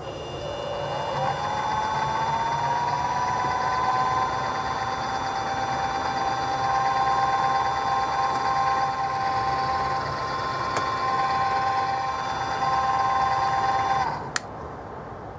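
A milling machine motor spins up with a rising whine and then hums steadily.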